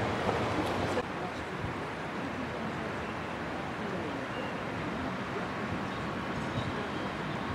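A train rumbles faintly far off.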